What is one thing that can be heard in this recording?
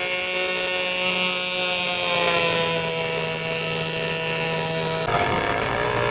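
Water splashes and churns behind a small boat.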